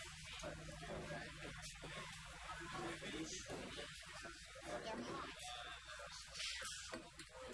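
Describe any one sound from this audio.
A crowd of children and adults chatters nearby outdoors.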